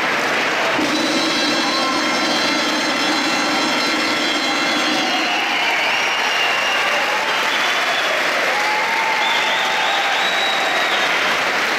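A small folk band plays a tune in a large echoing hall.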